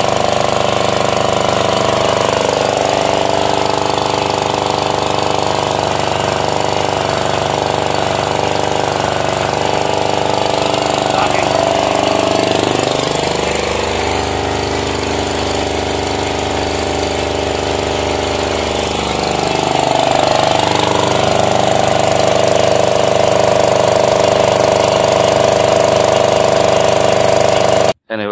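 Water gushes and splashes from a pump outlet.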